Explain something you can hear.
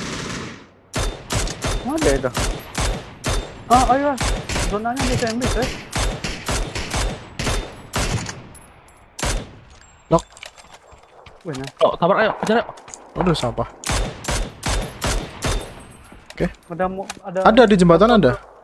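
Gunshots crack in quick, sharp bursts.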